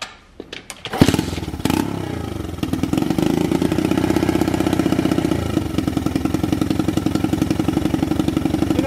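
A heat gun blows with a steady, loud whirring hum.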